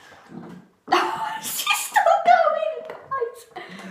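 A boy gulps water from a bottle up close.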